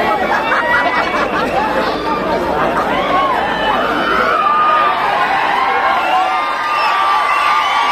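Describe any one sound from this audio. A large crowd of young men cheers and shouts loudly outdoors.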